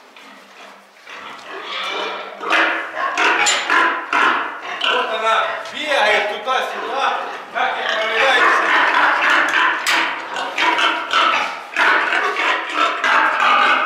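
Many pigs squeal and grunt loudly nearby.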